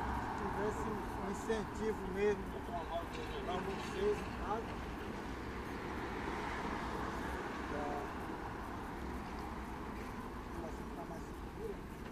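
Traffic hums steadily in the background.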